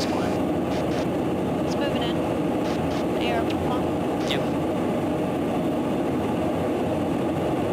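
Jet engines roar steadily up close.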